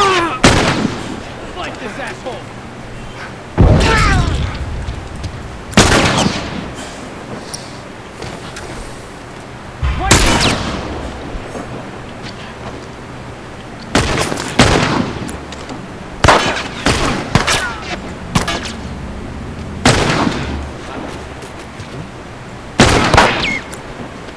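Loud gunshots ring out one at a time, each followed by a rolling echo.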